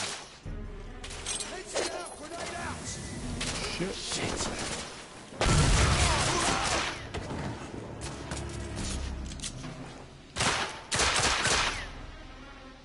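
Gunshots fire loudly in a large echoing hall.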